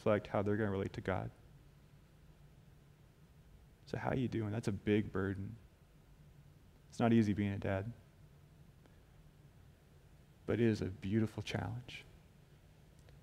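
A young man speaks calmly into a headset microphone, with pauses between phrases.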